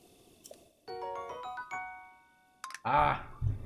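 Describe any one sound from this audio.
A bright rising chime jingle plays.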